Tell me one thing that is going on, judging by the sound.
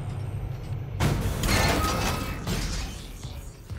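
A heavy metal door slides open with a loud mechanical hiss.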